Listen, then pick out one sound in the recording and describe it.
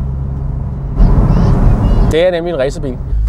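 Wind rushes past in an open car.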